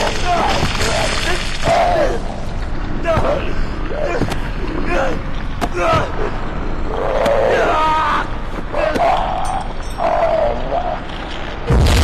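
A woman cries out in fear.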